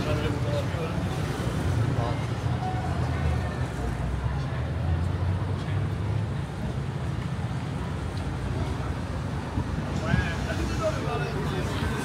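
Traffic rumbles steadily nearby outdoors.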